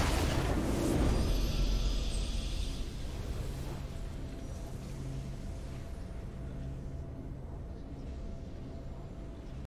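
A short victory tune plays and slowly fades.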